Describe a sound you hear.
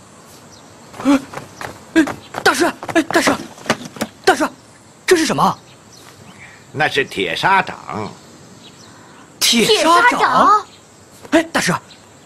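A young man speaks urgently nearby.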